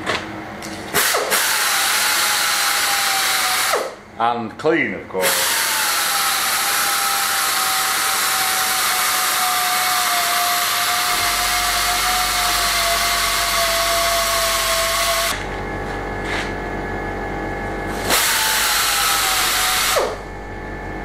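A small power drill whines steadily, stopping and starting.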